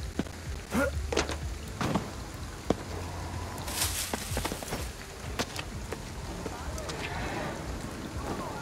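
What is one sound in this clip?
Heavy rain pours steadily outdoors.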